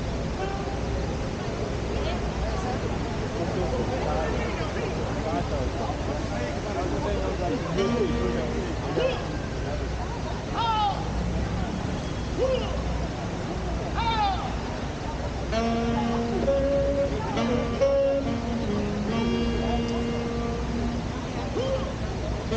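A crowd of people chatters outdoors in an open square.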